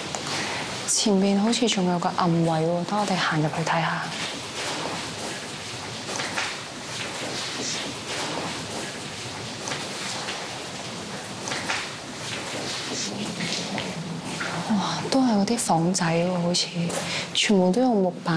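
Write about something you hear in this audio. A young woman speaks softly and nervously nearby.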